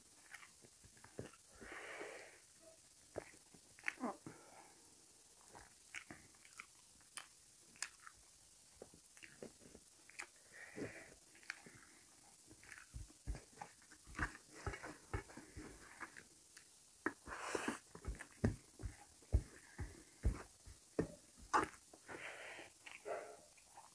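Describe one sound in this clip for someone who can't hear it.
Fingers squish and mix food on a metal plate.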